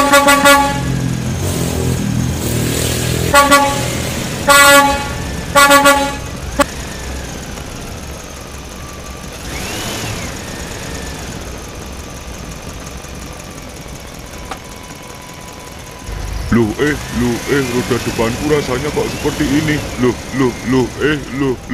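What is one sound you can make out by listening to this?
A small plastic toy truck rolls over a rough surface.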